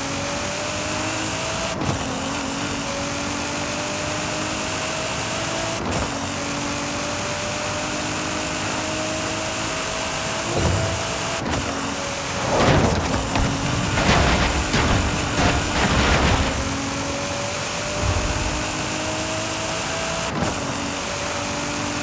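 A high-revving car engine climbs in pitch and shifts gears at high speed.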